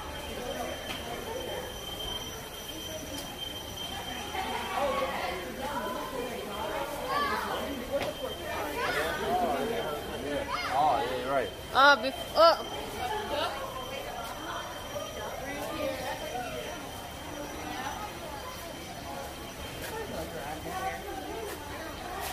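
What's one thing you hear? Many people chatter nearby in a large echoing indoor space.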